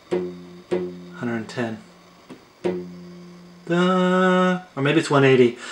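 A phone speaker plays a steady low electronic tone in short bursts.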